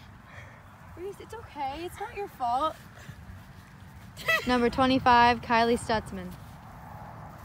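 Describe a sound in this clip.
A teenage girl speaks calmly into a microphone close by.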